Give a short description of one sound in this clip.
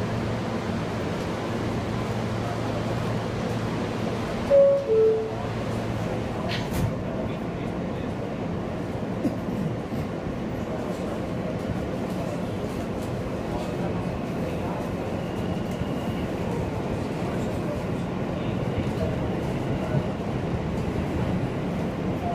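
A subway train rumbles and rattles through a tunnel.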